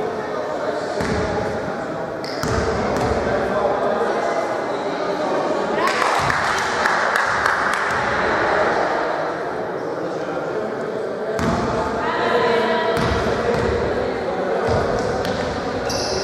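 Men shout and call out to each other across the court.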